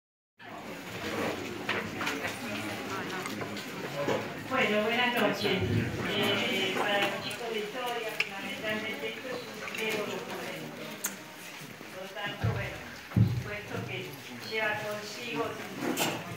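An elderly woman speaks steadily through a microphone and loudspeakers in a room with some echo.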